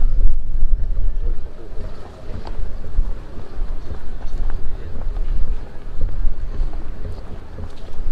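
Wind blows outdoors, rumbling steadily.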